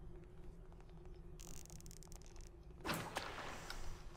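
An arrow is loosed from a bow.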